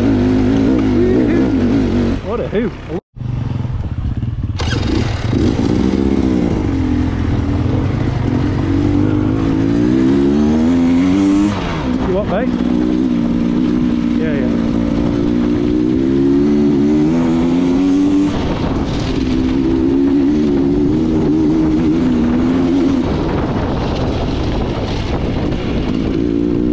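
A motorcycle engine putters and revs up and down close by.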